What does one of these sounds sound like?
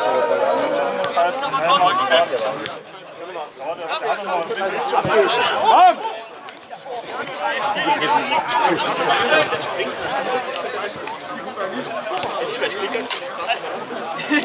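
Men shout and call out across an open outdoor pitch.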